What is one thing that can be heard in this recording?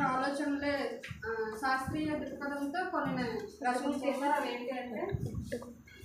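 A young woman speaks clearly to a room.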